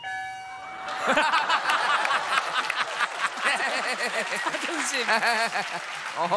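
An audience laughs and claps loudly.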